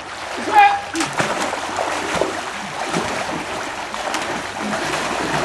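Water splashes as people thrash about in it.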